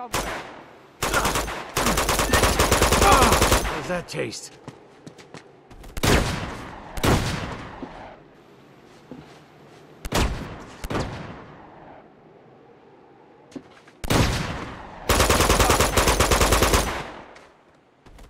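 Rifle gunfire rattles in loud rapid bursts.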